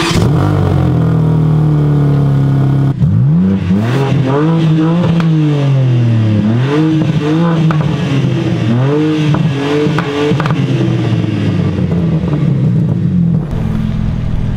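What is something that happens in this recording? A sports car's engine revs hard again and again, with a deep roaring exhaust.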